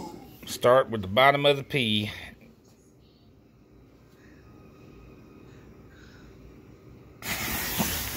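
A lighter flame hisses softly.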